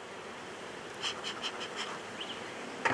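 A bee smoker puffs in short bursts.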